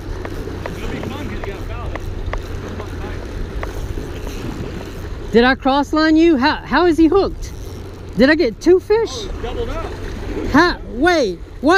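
Small waves splash against rocks.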